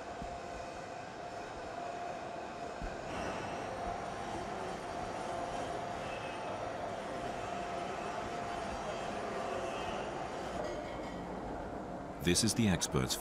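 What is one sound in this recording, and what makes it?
Machinery hums steadily in a large hall.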